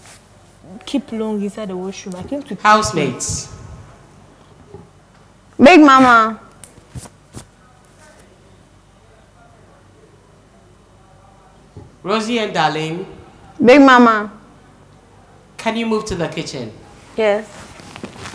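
Two young women talk with each other in short bursts.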